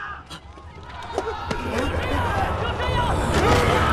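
A young boy shouts in alarm from a distance.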